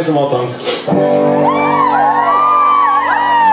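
An electric guitar is strummed through an amplifier.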